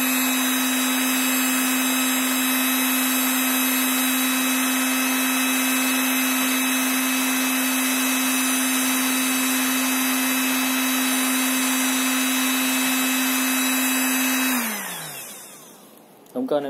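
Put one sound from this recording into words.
An electrical device hums loudly and steadily, then winds down and stops.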